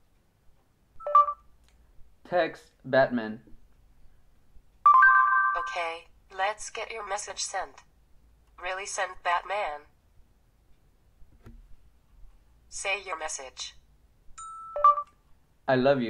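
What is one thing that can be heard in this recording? A phone beeps a short rising chime.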